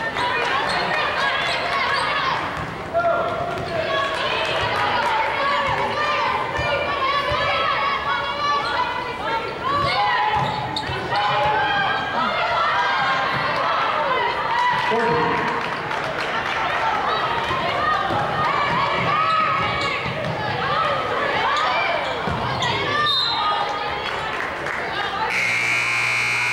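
Sneakers squeak on a hardwood court in a large echoing gym.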